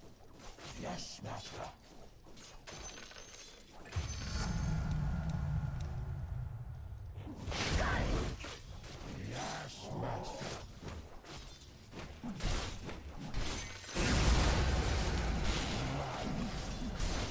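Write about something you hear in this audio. Magic spells burst and crackle.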